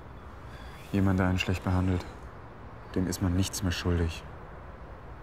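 A young man speaks quietly and close by.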